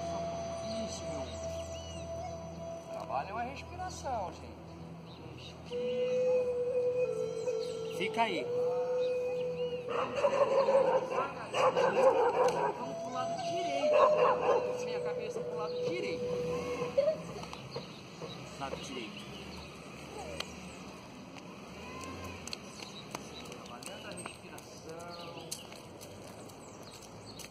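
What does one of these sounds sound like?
A man speaks calmly to a group outdoors.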